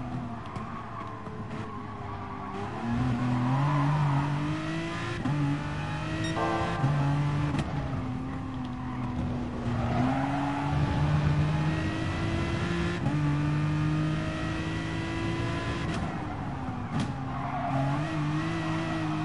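A racing car engine roars, rising in pitch as it speeds up and dropping at each gear change.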